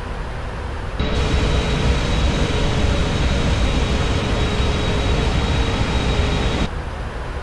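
Jet engines roar louder with a steady high whine.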